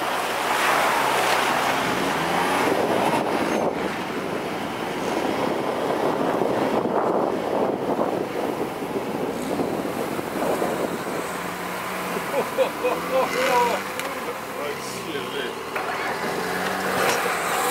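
An off-road vehicle engine rumbles steadily nearby.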